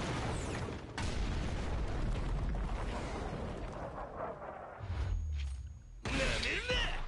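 Heavy rubble crashes and tumbles loudly.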